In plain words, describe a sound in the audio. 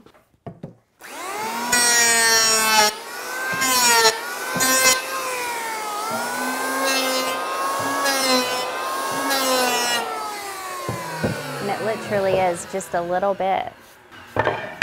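An electric hand planer whines loudly as it shaves wood.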